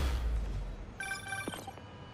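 A bright chime rings out in quick notes.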